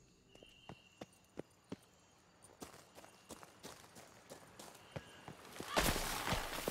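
Footsteps patter quickly over soft ground.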